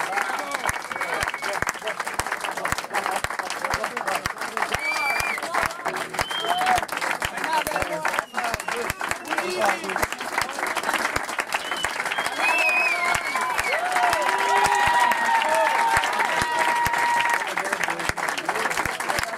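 People in a crowd cheer and whistle.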